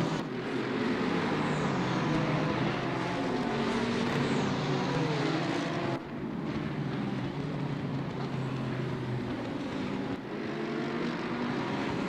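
Engines rev up and down as the cars shift gears.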